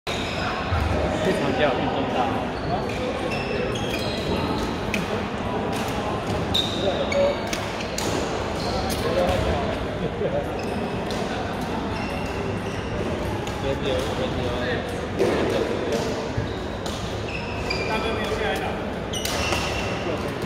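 Voices chatter in a large echoing hall.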